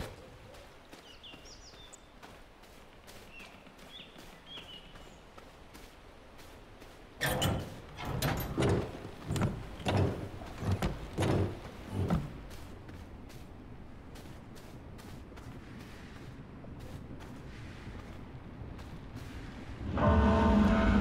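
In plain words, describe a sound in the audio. Footsteps tap steadily on the ground.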